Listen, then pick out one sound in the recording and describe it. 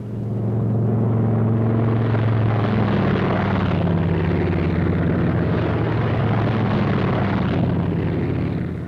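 A propeller plane's engine drones loudly and steadily.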